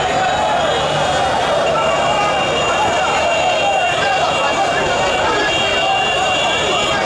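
A large crowd chants and cheers steadily outdoors.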